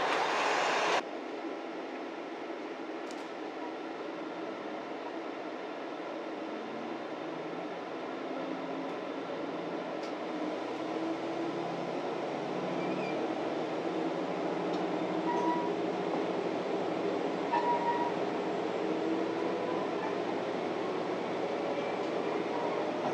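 A train engine hums and rises in pitch as it pulls away.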